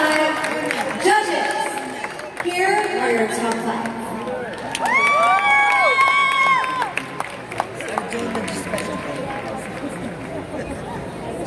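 Men clap their hands.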